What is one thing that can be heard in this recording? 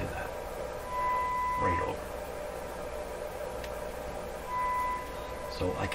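A steady electronic test tone beeps briefly, twice.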